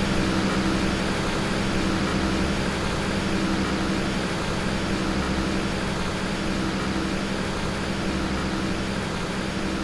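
A city bus engine drones as the bus drives away.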